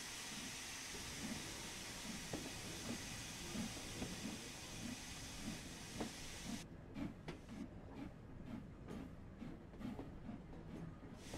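A steam locomotive chuffs, slowly at first and then faster as it pulls away.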